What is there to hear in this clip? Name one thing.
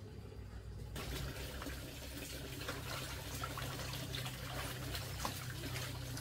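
Water splashes in a basin outdoors.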